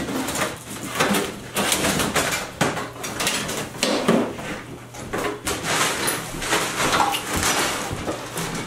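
Junk and debris rustle and clatter as it is cleared away.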